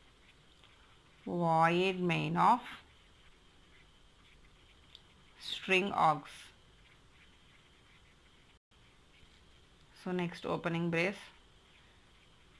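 A marker pen scratches on paper.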